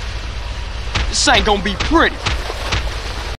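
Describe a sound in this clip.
Heavy blows thud in quick succession.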